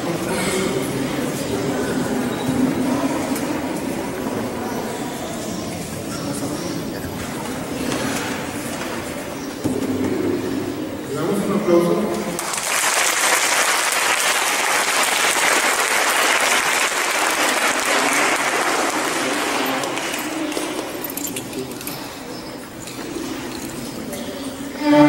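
A small string ensemble of violins and a cello plays a melody.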